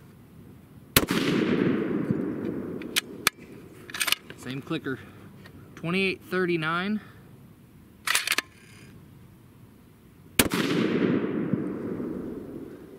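A rifle fires a loud shot outdoors that echoes away.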